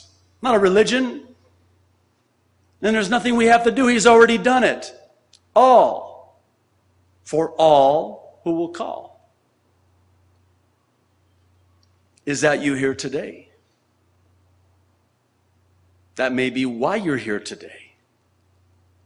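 A middle-aged man speaks with animation into a microphone, in short bursts with pauses.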